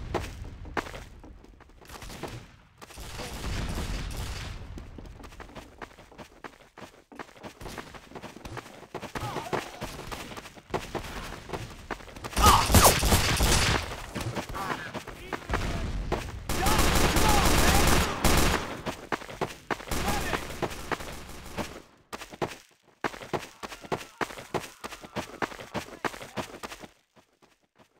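Footsteps run quickly over dry ground.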